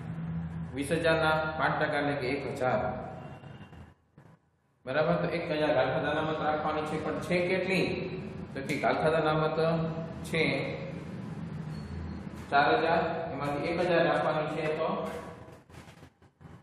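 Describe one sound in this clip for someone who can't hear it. A man speaks steadily, explaining close by.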